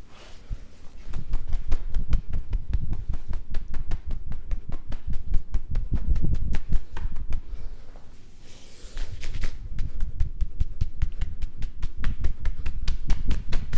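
Hands slap and pat rapidly on a man's back and arm.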